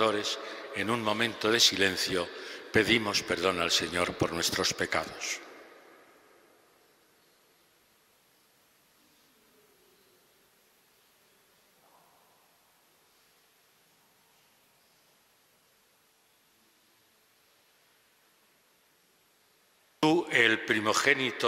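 An elderly man speaks calmly into a microphone in a large echoing hall.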